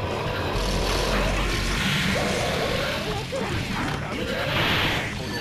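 Energetic electronic music plays throughout.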